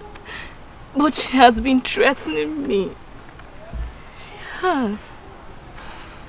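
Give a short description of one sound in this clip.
A young woman cries and speaks through sobs, close by.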